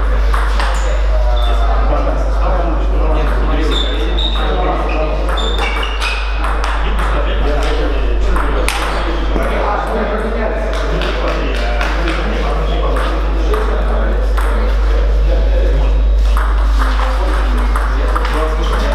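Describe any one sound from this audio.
Table tennis balls click against paddles and tables in a quick, uneven rhythm.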